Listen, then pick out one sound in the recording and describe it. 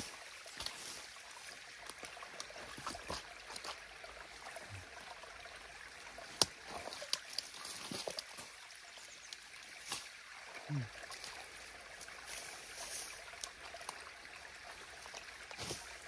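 Boots squelch in wet mud.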